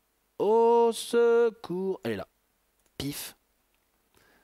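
A young man speaks loudly and with animation, close to a microphone.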